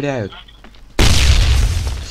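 A rocket launcher fires with a loud boom.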